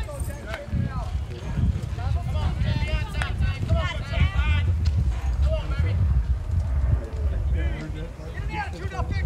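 Players call out across an open field.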